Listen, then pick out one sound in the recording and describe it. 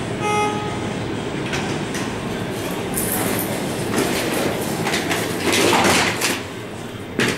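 Elevator doors slide open with a low rumble.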